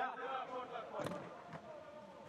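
A ball is kicked with a dull thud in a large echoing hall.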